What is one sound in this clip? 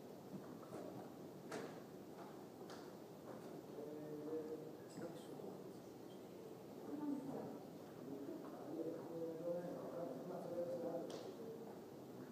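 Knocks and thuds sound on a wooden stage in a large echoing hall.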